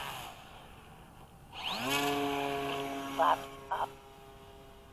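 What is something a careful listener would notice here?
Water splashes as a model plane skims across the surface.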